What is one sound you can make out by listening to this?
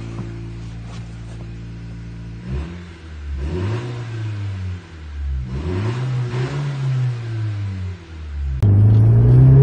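A car engine idles, then revs up and down several times.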